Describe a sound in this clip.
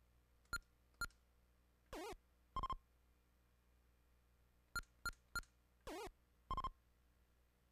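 Short electronic video game beeps and blips sound in quick bursts.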